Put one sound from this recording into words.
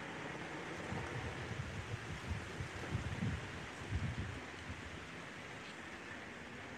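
Wind rustles leaves close by and rumbles in gusts outdoors.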